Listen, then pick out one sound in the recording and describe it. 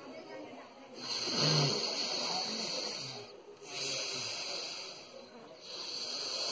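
A man breathes in and out forcefully through the nose.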